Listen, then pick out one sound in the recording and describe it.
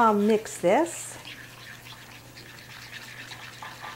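A small spoon stirs and scrapes inside a bowl.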